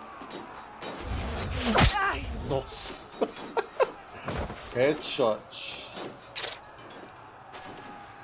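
A man grunts and cries out as he falls.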